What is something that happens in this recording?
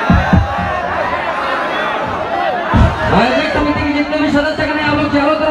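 Loud music with a heavy beat plays through loudspeakers outdoors.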